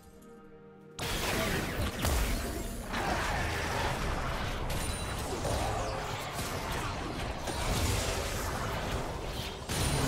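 Game spells and weapon hits clash and burst in a fast fight.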